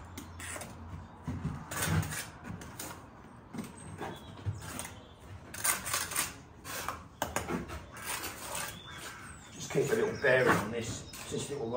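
A trowel scrapes mortar on bricks.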